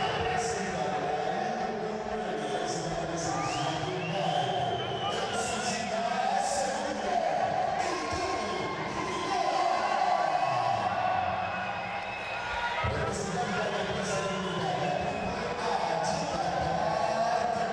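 A large crowd cheers and shouts in a large echoing hall.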